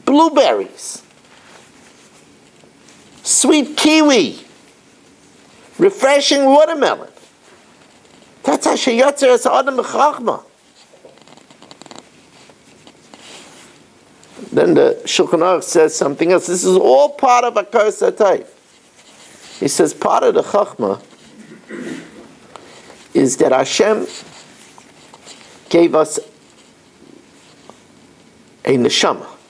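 An elderly man speaks calmly close by, in bursts with pauses.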